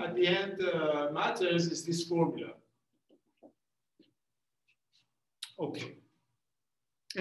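A middle-aged man lectures calmly, with pauses.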